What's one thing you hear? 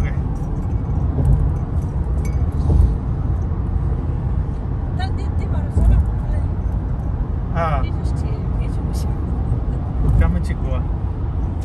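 Tyres roar steadily on the road surface.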